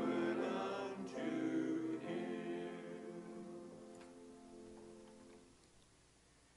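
A group of people sings a hymn together, fading out.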